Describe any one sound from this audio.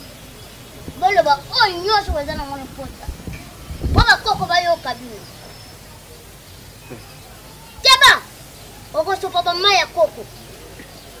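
A young man talks back nearby.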